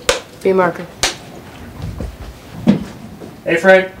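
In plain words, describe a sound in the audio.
A clapperboard snaps shut with a sharp clack.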